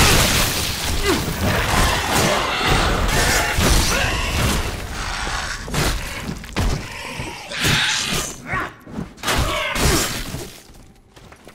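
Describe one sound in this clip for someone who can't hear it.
Heavy weapon blows thud and squelch in quick succession.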